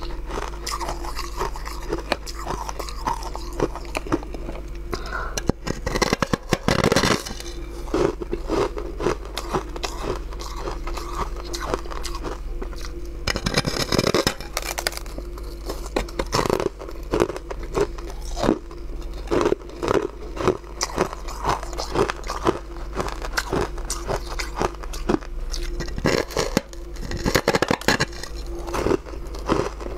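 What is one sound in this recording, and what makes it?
Crushed ice crunches as a woman chews it close by.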